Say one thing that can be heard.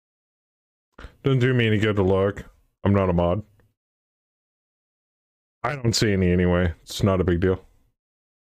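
A middle-aged man speaks calmly into a close microphone, in short bursts.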